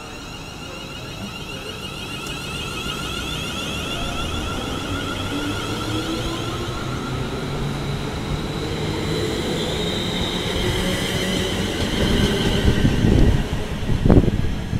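An electric train's motors whine, rising in pitch as the train pulls away.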